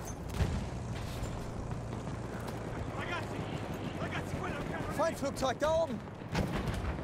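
Explosions rumble deep and heavy in the distance.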